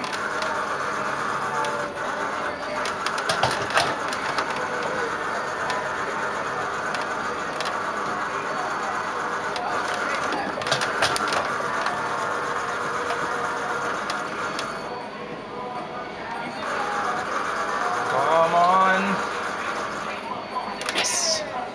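A racing arcade game plays engine roars and music through loudspeakers.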